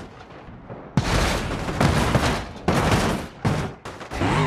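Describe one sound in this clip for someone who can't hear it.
A fire explodes with a loud roar.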